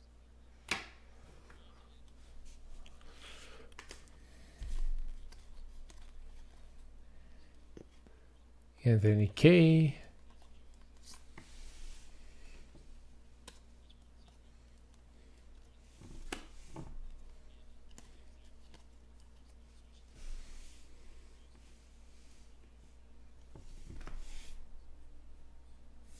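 Trading cards slide and click against each other as they are shuffled by hand.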